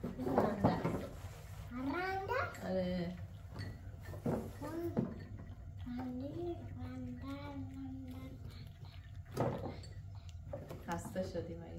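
Cups and dishes clink on a tray.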